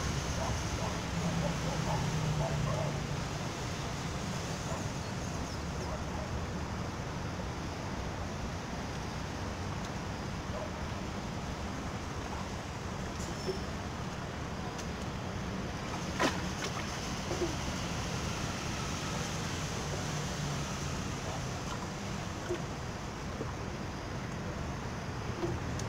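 Wind rustles through tree leaves steadily outdoors.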